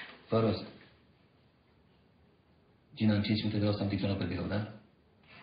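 A middle-aged man speaks into a telephone in a low, calm voice.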